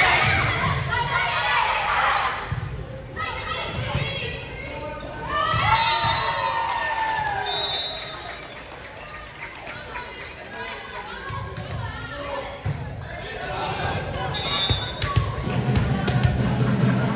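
Young women shout and cheer in a large echoing gym.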